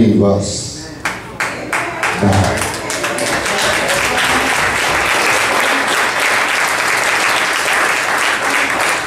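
A congregation claps and cheers.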